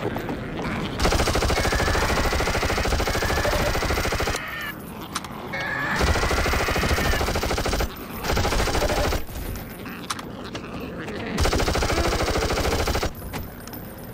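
An automatic gun fires rapid bursts of shots.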